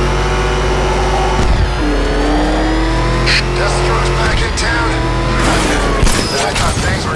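A powerful car engine roars and revs.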